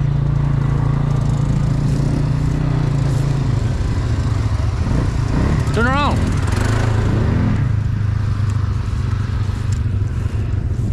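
Quad bike engines idle with a steady low rumble.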